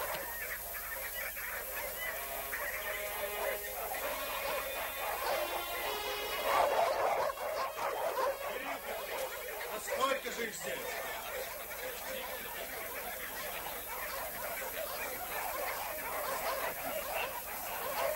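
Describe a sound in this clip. Sheep bleat nearby.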